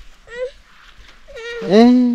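A toddler babbles nearby.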